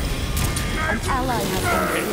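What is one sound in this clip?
Fire spells burst and roar in a fight.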